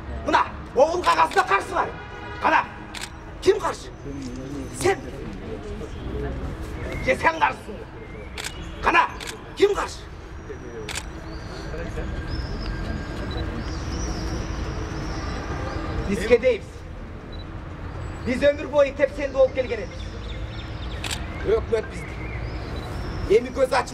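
An elderly man speaks loudly and with animation outdoors.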